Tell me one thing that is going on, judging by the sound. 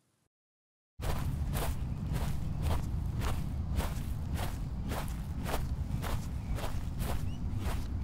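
Footsteps thud at a steady pace on grass.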